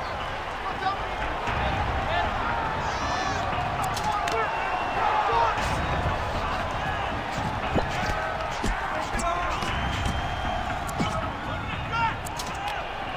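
Punches and grapples land with dull thuds.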